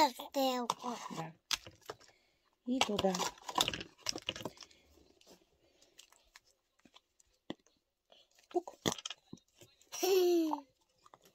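Plastic packaging crinkles and clicks in hands.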